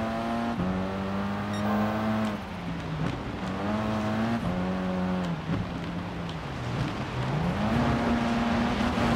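A racing car engine roars and shifts gears up and down.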